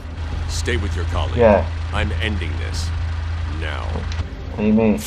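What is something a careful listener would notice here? A man with a deep voice speaks calmly and gravely.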